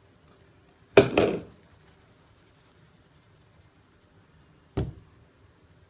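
A metal sieve is tapped over a bowl as flour is sifted.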